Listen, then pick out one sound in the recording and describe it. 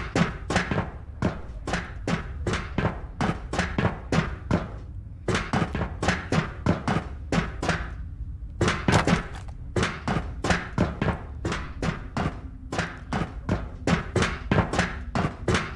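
Footsteps clang quickly on metal stairs.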